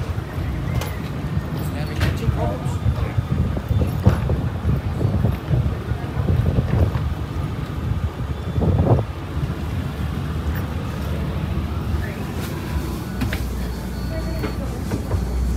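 Wind blows outdoors with a low rumble.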